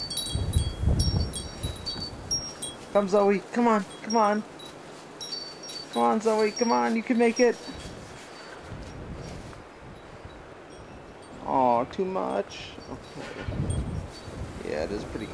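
A small dog pushes through deep snow with soft crunching.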